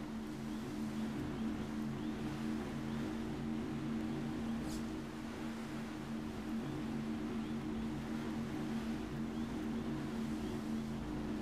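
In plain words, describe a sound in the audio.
A hovercraft engine drones steadily.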